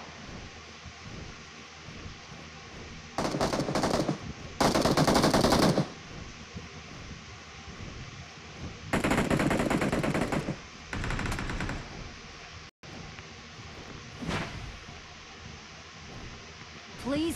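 A large winged creature flaps its wings in flight.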